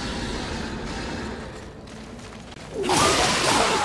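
Heavy footsteps run across a stone floor.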